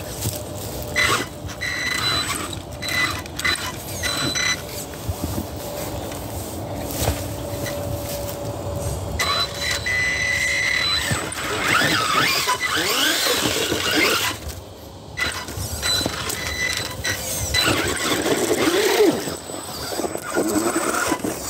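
A small electric motor whines in short bursts.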